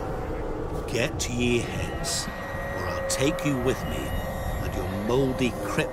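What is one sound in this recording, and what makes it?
A man speaks in a low, calm voice.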